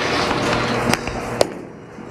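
A bowling ball thuds onto a lane.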